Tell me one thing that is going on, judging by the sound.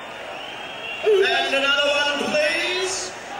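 A rock band plays loudly through loudspeakers.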